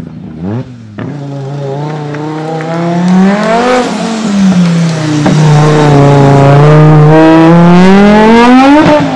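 A rally car engine roars closer, revving up and down through the gears as it passes nearby.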